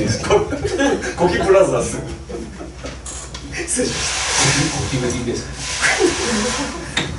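A small live band plays guitars and keyboard through loudspeakers.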